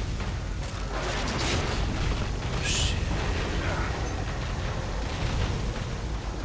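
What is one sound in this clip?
An explosion bursts with a heavy boom.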